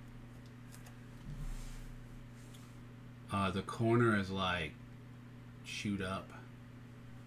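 Trading cards slide and rub against each other close by.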